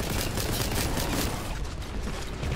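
A gun fires rapidly in bursts.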